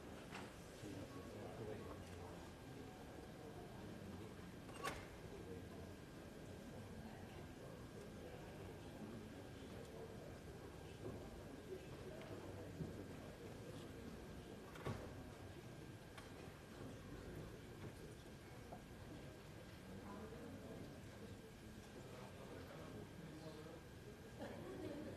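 A room full of people murmurs softly.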